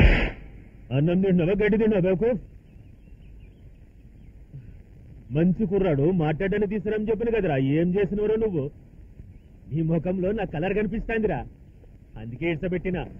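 A middle-aged man speaks forcefully and angrily, close by.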